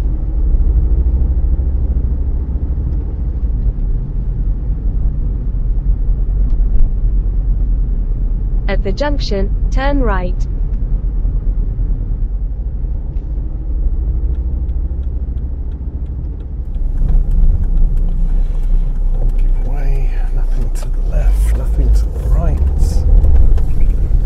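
A car engine hums steadily with a low rumble as the car drives along.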